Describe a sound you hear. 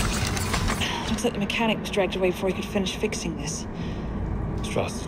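A young woman speaks urgently nearby.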